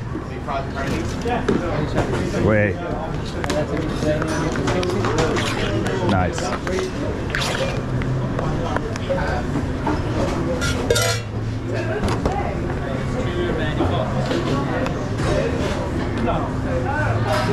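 Men talk in a busy, noisy room.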